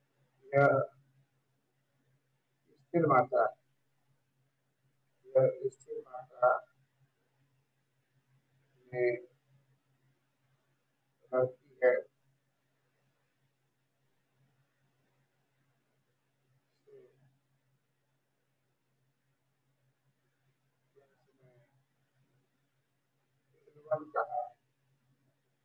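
A man speaks calmly over an online call, in short phrases with long pauses.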